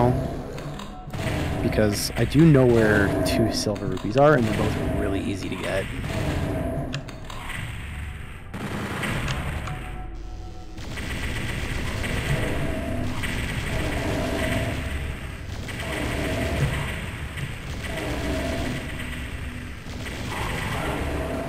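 Game gunshots and blasts boom in quick bursts.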